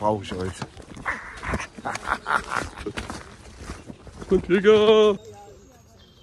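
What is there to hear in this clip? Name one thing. A man laughs loudly and close up.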